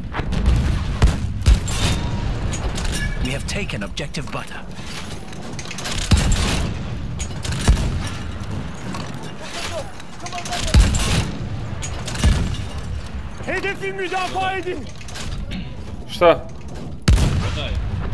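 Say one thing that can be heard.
A heavy field gun fires with loud, deep booms.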